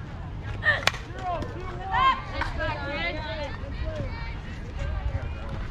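Young girls shout and cheer across an open field.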